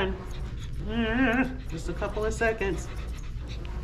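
A small dog whines and yowls.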